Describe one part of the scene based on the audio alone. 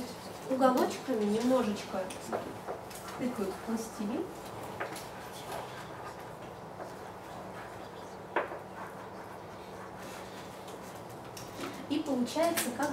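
A young woman speaks calmly, with long pauses.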